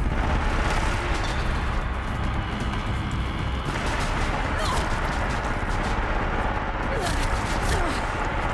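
Arrows fly off with a whoosh.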